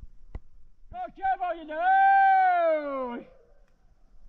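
A man calls out loudly in a long, drawn-out shout outdoors.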